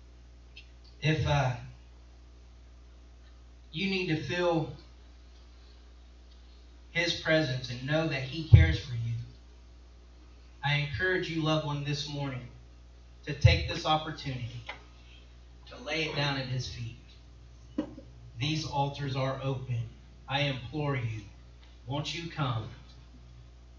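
A man speaks slowly and solemnly through a microphone, pausing between phrases.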